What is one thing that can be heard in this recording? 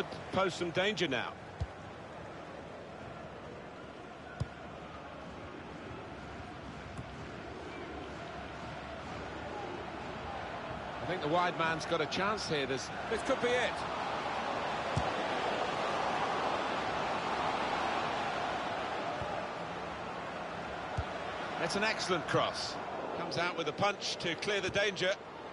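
A stadium crowd roars steadily, swelling louder as play nears the goal.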